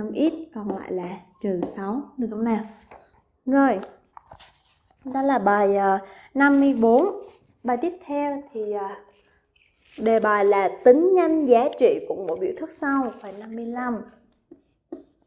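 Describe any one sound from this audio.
A young woman speaks calmly and clearly into a close microphone.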